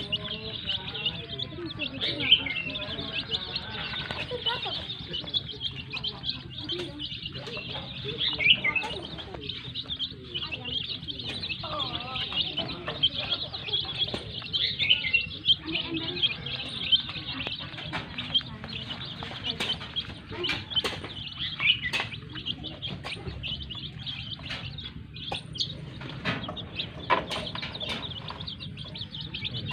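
Many chicks peep loudly and constantly.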